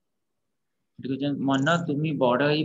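A man sings a slow chant over an online call.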